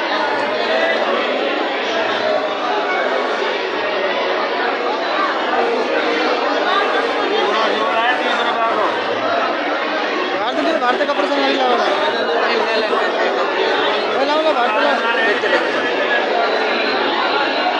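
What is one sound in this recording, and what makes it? A crowd of men and women chatter loudly all around, in a busy echoing space.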